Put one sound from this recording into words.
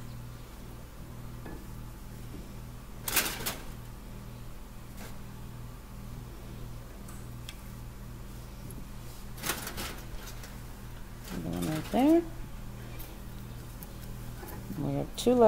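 Fingers scrape and tap inside a metal can.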